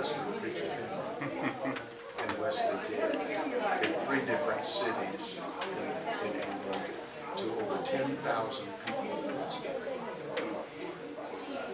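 An elderly man speaks steadily and calmly, close by.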